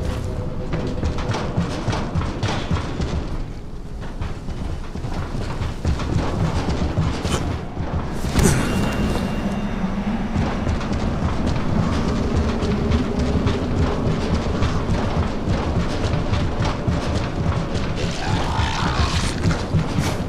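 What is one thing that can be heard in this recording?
Footsteps thud quickly across a corrugated metal roof.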